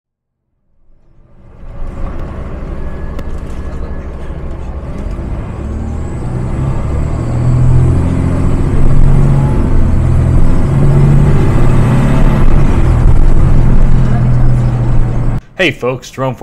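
A bus engine rumbles and hums steadily while driving.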